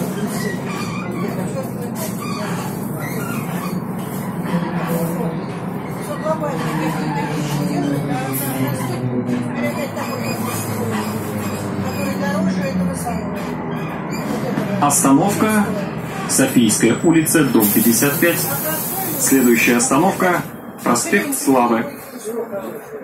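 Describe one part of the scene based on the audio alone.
A bus engine hums and drones steadily while driving.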